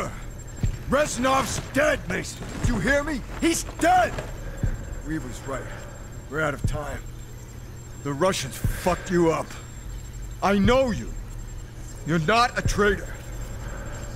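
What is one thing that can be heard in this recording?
A middle-aged man shouts angrily and desperately, close by.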